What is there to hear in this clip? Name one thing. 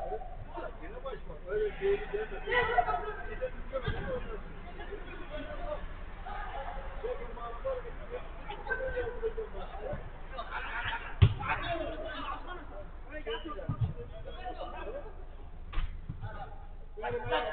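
Young men shout and call out to each other across an outdoor pitch.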